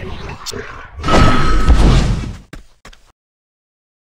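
A magical shimmering effect swells.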